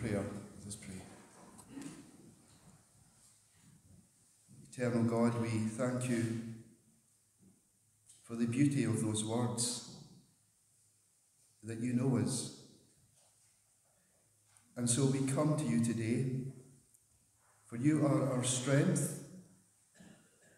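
A middle-aged man speaks slowly and thoughtfully into a close microphone, with pauses.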